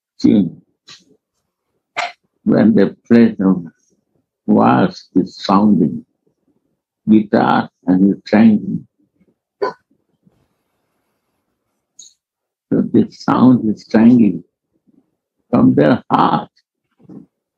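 An elderly man speaks calmly in bursts, heard through an online call.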